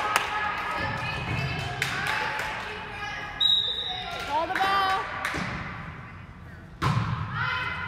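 Young women call out to each other in an echoing gym.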